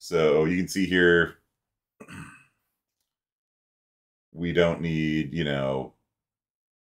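A man speaks calmly in short bursts.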